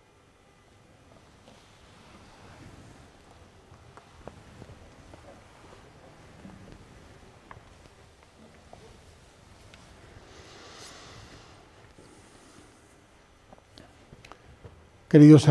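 A man speaks softly, then loudly.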